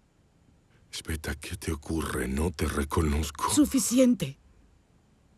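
A man speaks in a low, tense voice, close by.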